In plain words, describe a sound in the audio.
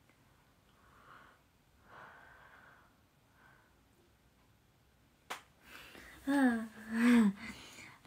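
A young woman laughs behind her hand.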